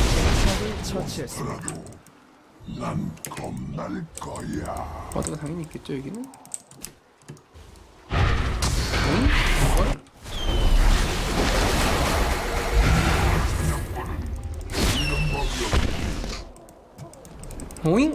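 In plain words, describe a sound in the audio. A young man talks into a microphone with animation, close by.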